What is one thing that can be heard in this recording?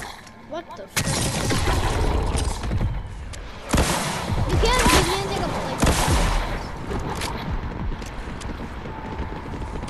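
A rocket launcher fires with loud booming blasts.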